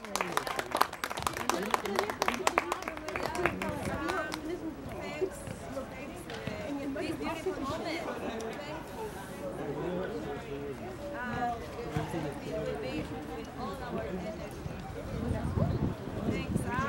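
A woman speaks calmly outdoors, close by.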